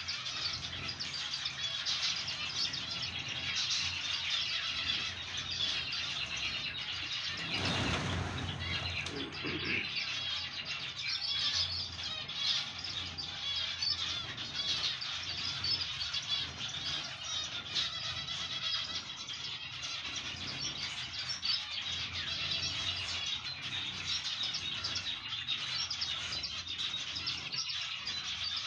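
A flock of finches chirps and twitters.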